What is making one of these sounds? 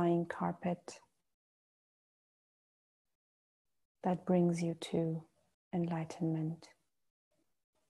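A woman speaks calmly and softly into a close microphone, with long pauses.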